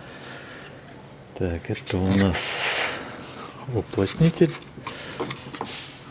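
A plastic clip clicks as a connector is pushed into place.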